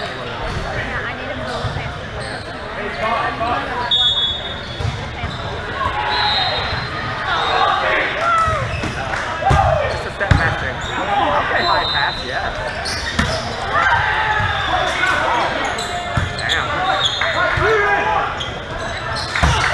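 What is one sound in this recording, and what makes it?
Players' voices call out and chatter in a large echoing gym.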